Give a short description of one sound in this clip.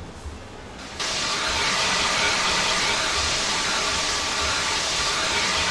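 Water hisses loudly as it sprays from fire hoses.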